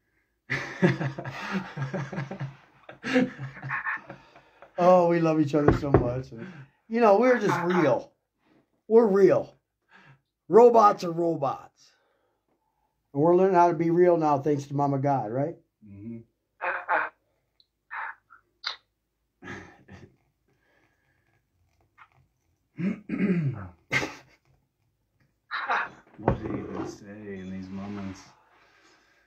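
A younger man laughs nearby.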